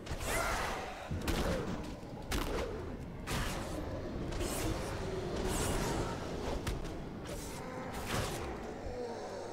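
Magic spells whoosh and burst in quick succession.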